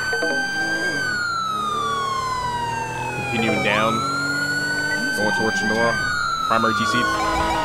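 A police siren wails, slowly rising and falling in pitch.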